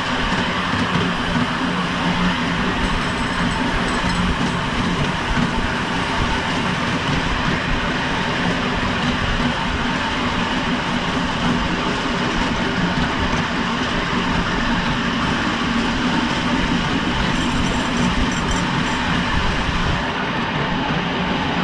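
A small train engine hums steadily as the train rolls along.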